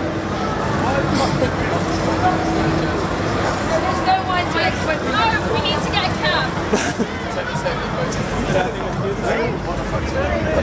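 High-heeled shoes click on the pavement.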